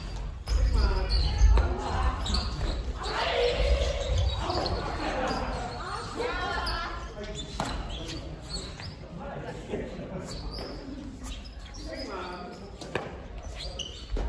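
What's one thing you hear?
Women talk and call out with animation nearby.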